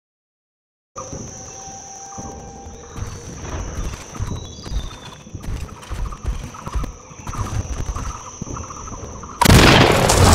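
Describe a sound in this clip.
Heavy footsteps of a large mechanical creature thud quickly and steadily.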